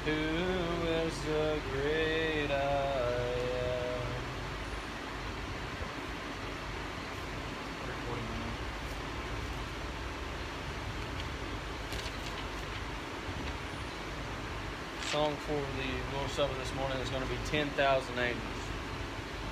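A young man reads aloud nearby, outdoors.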